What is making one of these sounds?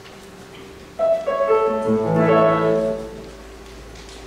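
A choir sings a short chord in a room with some echo.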